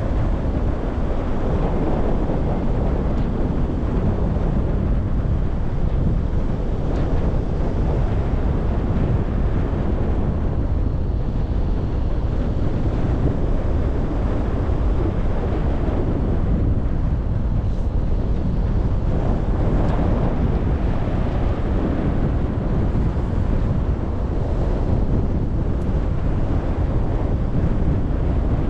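Strong wind roars and buffets against the microphone throughout, as if in flight high in the open air.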